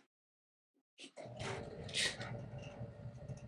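A metal tape measure rattles as it is pulled out.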